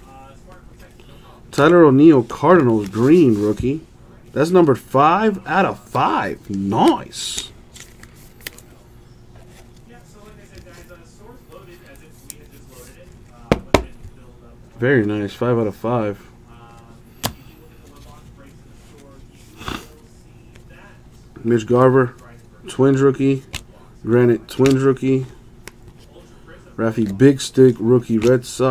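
Trading cards slide and rustle against each other in someone's hands.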